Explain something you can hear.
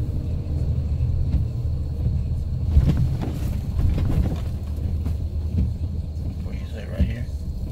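Rain patters on a car's windows and roof.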